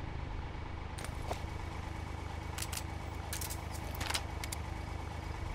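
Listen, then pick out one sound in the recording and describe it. Short electronic clicks sound as a menu is browsed.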